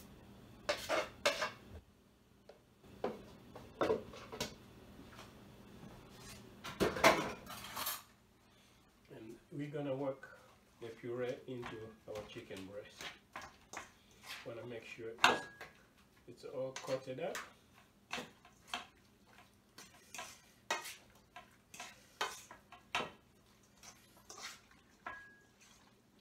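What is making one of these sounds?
A metal utensil clinks and scrapes against a metal bowl.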